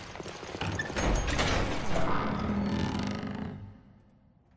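A large door swings open with a deep rumble.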